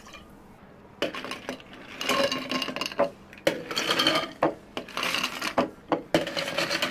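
Ice cubes clatter and clink into glass jars.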